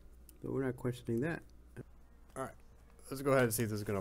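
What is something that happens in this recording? A laptop lid is lifted open with a soft click.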